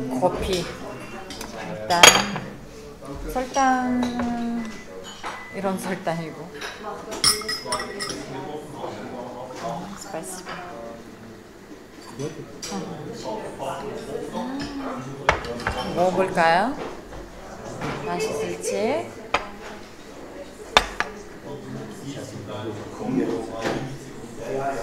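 Dishes and cutlery clink on a table.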